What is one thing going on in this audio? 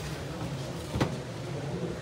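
A small plastic jar knocks against a hard tabletop.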